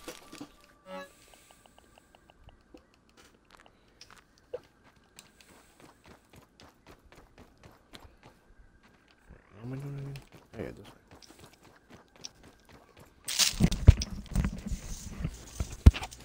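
Footsteps patter lightly on the ground.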